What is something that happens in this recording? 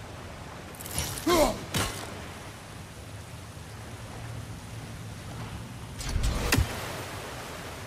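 A heavy axe strikes with a sharp thud.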